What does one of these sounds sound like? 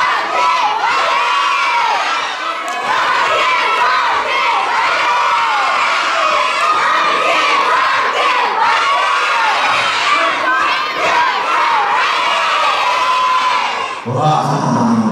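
Children shout and call out excitedly together.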